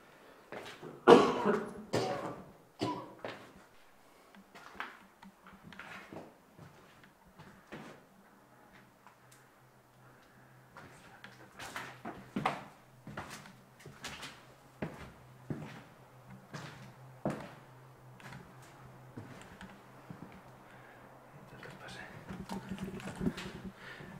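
Footsteps crunch over debris and broken glass on a hard floor.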